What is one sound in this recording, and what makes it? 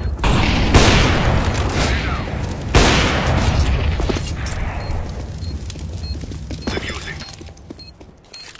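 A grenade explodes with a loud boom and a long rumbling tail.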